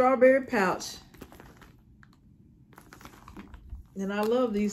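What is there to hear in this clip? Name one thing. A plastic pouch crinkles in someone's hands.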